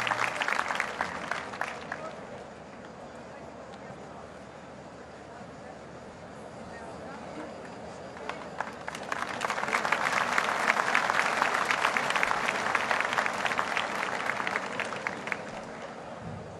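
A large crowd claps and cheers in a big open space.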